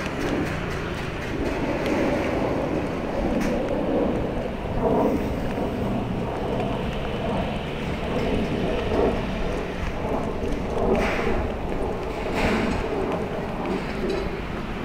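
Footsteps walk steadily on a paved path.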